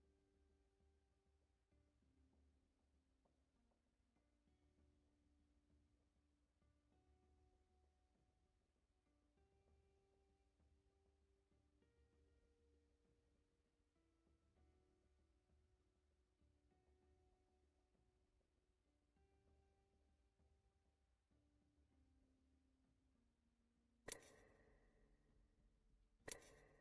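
Soft, calm music plays with slow, held notes.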